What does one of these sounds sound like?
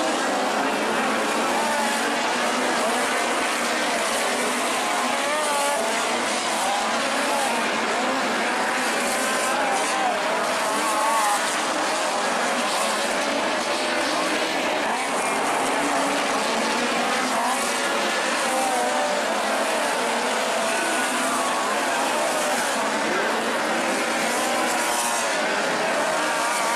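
A crowd of spectators talks and murmurs nearby.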